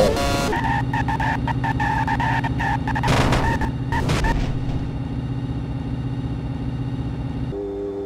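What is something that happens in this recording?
A racing car engine whines steadily at high speed.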